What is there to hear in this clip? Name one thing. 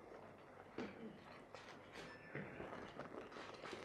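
Footsteps tap across a wooden stage.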